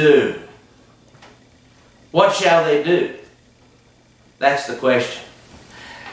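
A man speaks slowly and deliberately, close to a microphone, with pauses between phrases.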